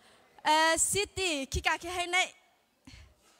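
A woman speaks loudly through a loudspeaker in a large echoing hall.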